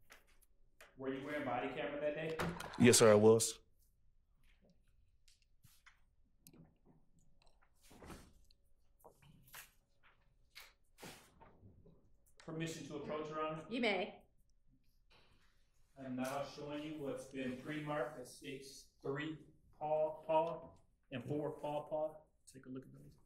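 A man speaks calmly through a microphone, in short bursts with pauses.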